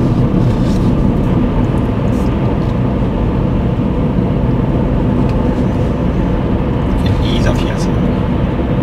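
A car engine hums steadily as tyres roll over the road inside a moving car.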